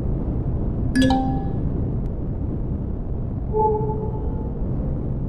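An electronic chime beeps now and then.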